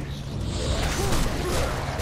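Fire roars in a burst.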